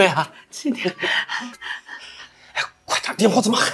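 A middle-aged woman speaks warmly up close.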